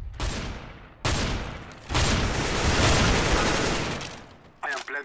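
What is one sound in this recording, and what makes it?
Rifle shots ring out in loud bursts.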